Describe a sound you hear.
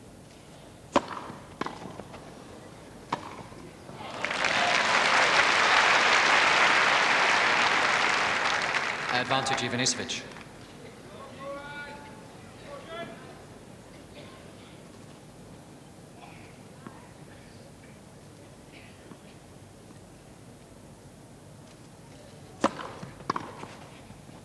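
Tennis balls are struck with sharp pops of a racket.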